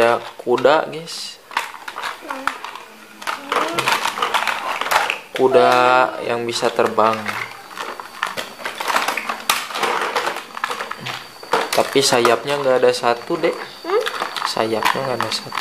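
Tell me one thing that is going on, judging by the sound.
Plastic toys clatter and knock together.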